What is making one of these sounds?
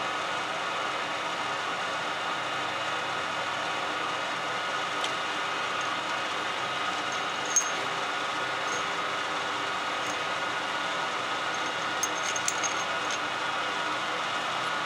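A metal lathe runs with a steady motor whine.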